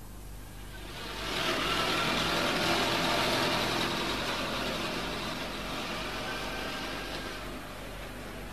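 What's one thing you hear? A small car engine hums as the car drives past close by and moves away.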